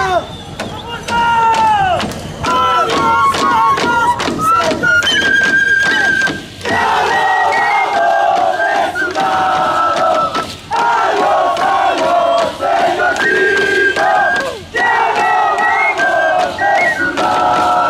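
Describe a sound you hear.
Reed pipes play a shrill, lively melody.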